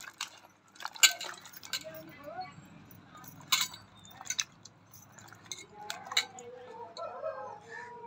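Water splashes as a hand stirs vegetables in a metal pot.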